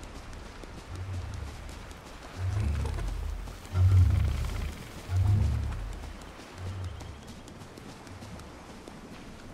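Footsteps thud on soft ground.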